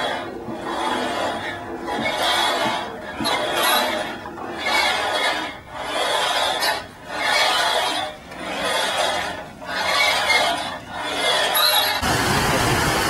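A metal swing creaks and whooshes back and forth in a steady rhythm.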